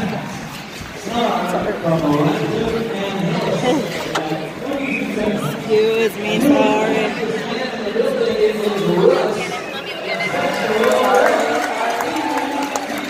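A crowd of people chatters and calls out in a large echoing arena.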